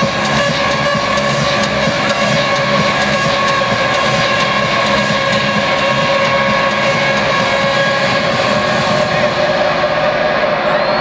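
Loud music plays over a sound system in a large echoing arena.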